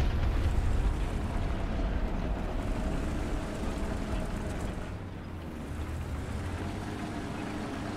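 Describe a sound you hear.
Tank tracks clatter over stony ground.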